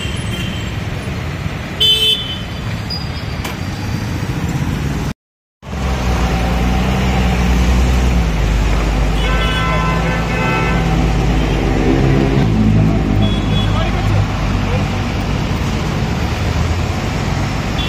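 Motorcycle engines putter as they ride past close by.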